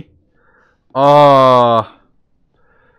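A young man groans loudly in a drawn-out, wavering voice.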